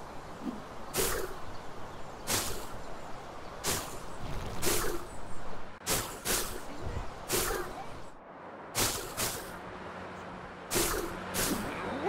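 A swinging web line shoots out with a sharp swishing snap, again and again.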